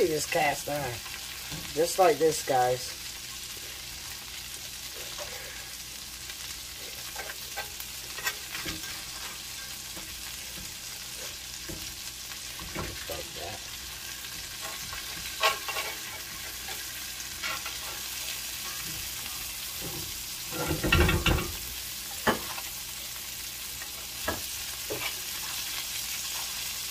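Butter sizzles and crackles in a hot pan.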